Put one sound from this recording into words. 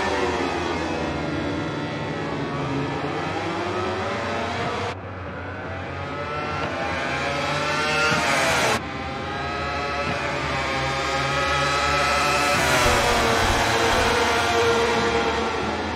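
Racing motorcycle engines scream at high revs, rising and falling as the riders shift gears.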